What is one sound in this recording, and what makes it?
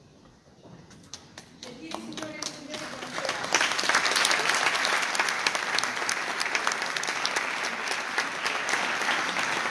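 An audience applauds in a large hall, growing louder.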